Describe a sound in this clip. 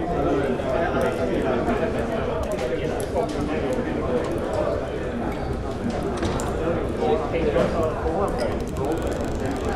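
A crowd of men and women chatter and murmur indoors.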